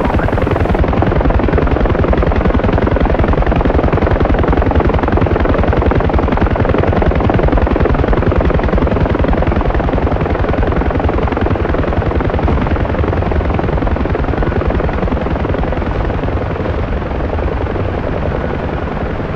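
A helicopter engine whines steadily.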